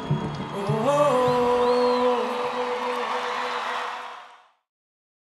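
A man sings a long held note through a microphone.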